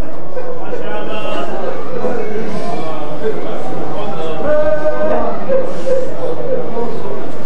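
A young man sings loudly into a microphone, heard through loudspeakers in an echoing hall.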